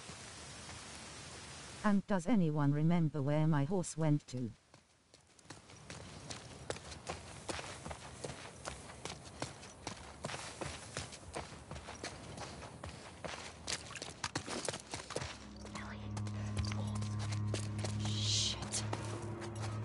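Footsteps splash and crunch over wet ground.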